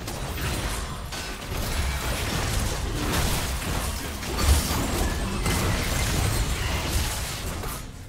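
Spell effects and attacks crackle and clash in a game fight.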